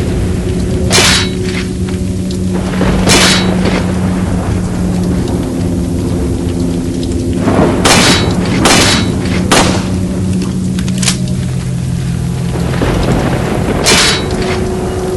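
A pistol fires sharp, loud shots.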